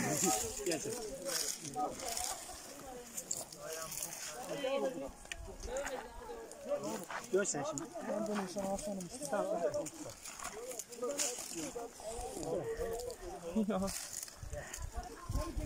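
Leafy branches rustle and snap as people push through brush.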